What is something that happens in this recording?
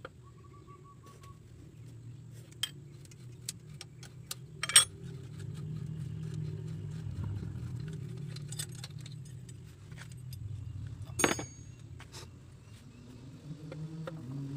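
An open-end spanner clicks against the metal fittings of a diesel injection pump.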